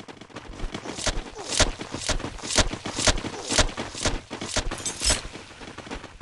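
Fists land in quick, sharp thuds.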